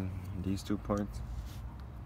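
Metal parts click and clink as a hand works a tool on a brake.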